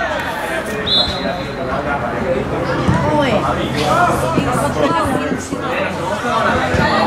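Young men shout and call out across an open field.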